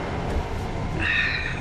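A woman in a truck cab groans loudly.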